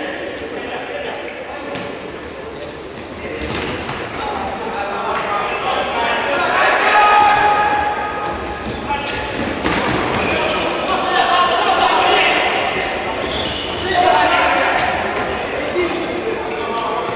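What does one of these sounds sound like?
A futsal ball is kicked in an echoing indoor hall.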